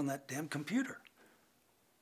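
A middle-aged man speaks in a low, urgent voice close by.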